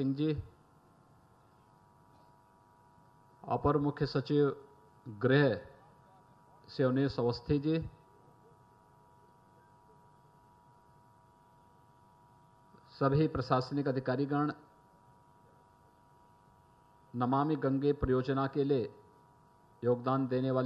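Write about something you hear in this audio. A man speaks forcefully into a microphone over loudspeakers, in bursts with long pauses.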